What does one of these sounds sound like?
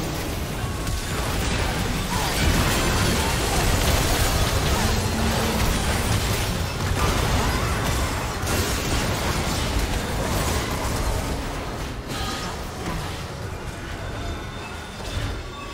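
Video game spells and attacks crackle, whoosh and boom in a busy fight.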